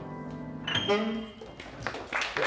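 A saxophone plays a short high phrase.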